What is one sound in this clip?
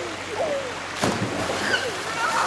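A boy jumps into the water with a loud splash.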